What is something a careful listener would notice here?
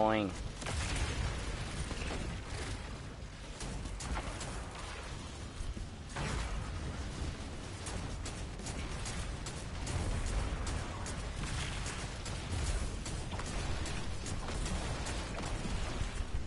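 Explosions boom with a low rumble.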